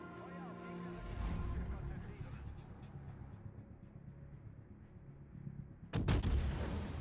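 Heavy ship guns fire with deep, rumbling booms.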